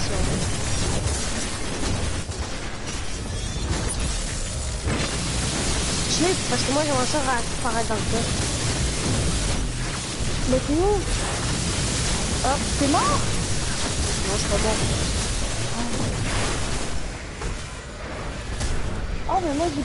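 Loud blasts boom.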